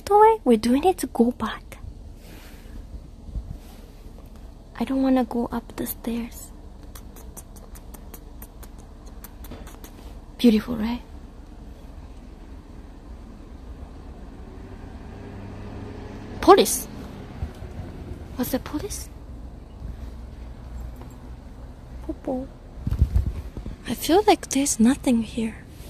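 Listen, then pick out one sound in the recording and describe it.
A young woman speaks softly and close by, in short bursts.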